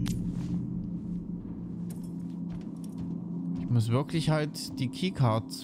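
Footsteps thud on a metal floor.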